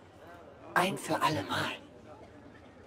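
A young woman speaks with animation, up close.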